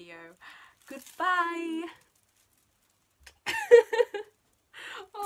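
A young woman laughs excitedly.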